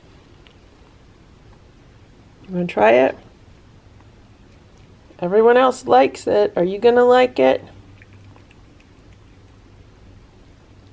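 A cat licks and laps at soft food.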